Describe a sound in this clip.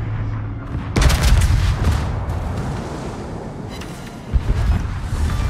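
Heavy guns fire with deep, rumbling booms.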